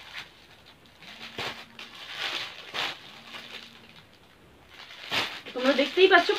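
Plastic packets rustle and crinkle in hands.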